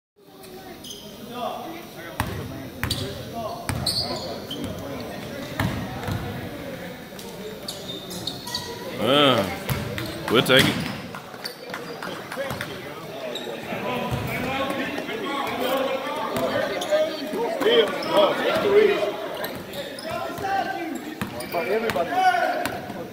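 A basketball bounces repeatedly on a hard floor in a large echoing gym.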